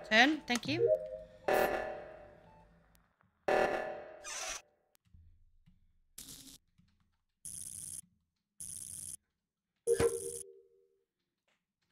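Short electronic game chimes and beeps sound.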